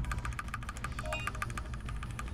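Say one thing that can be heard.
A short electronic beep sounds.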